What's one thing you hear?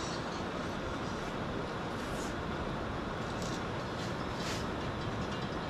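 A young woman chews food noisily.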